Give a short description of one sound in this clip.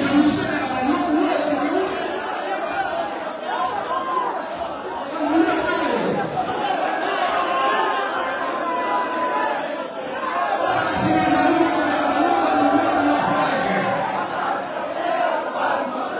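A large crowd of men chants loudly in a reverberant hall.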